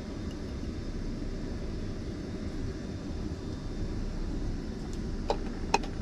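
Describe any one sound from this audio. Oil pours from a plastic bottle into a pan.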